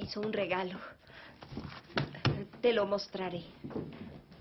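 A young woman speaks urgently, close by.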